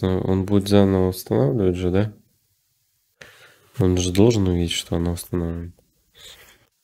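A young man talks calmly and closely into a microphone.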